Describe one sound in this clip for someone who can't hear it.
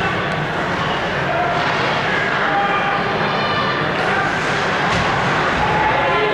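Ice skates scrape and hiss across the ice in a large echoing arena.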